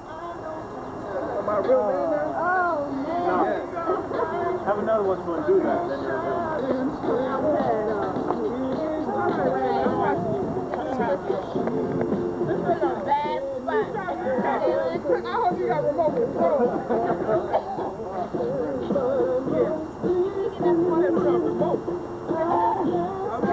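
Several adults chat and laugh together nearby outdoors.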